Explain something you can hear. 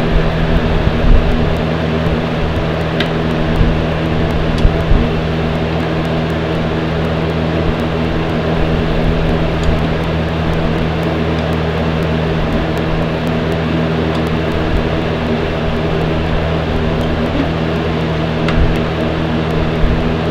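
Plastic toy figures click and tap against each other as they are handled.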